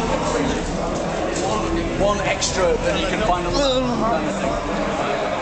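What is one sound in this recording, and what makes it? A crowd chatters in an echoing hall.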